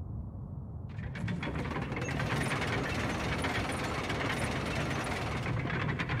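Large gears grind and whir steadily.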